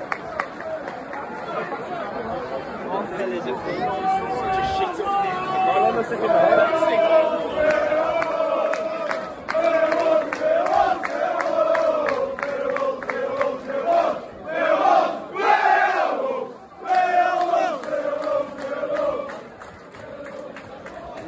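A large crowd of men sings a loud chant together in an open stadium.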